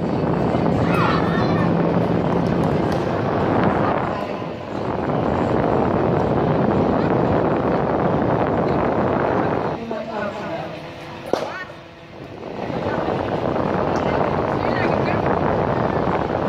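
Young women call out to each other on an outdoor court.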